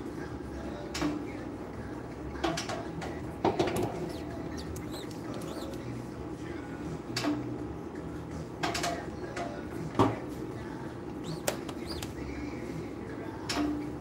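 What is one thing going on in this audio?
A metal press frame clacks sharply now and then.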